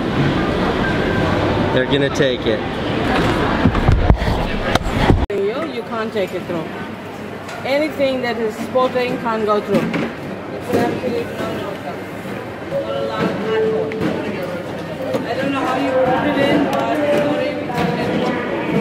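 Men and women talk in a busy, echoing hall.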